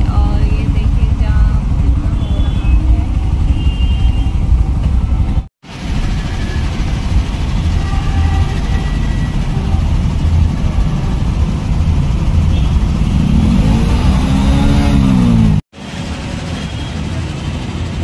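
Traffic rumbles steadily around outdoors.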